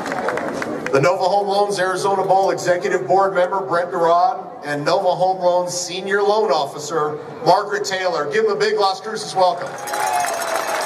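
A man speaks forcefully through loudspeakers, echoing outdoors.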